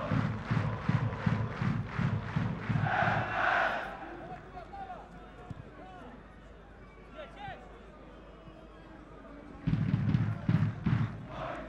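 A stadium crowd chants and drums in a steady rhythm, outdoors.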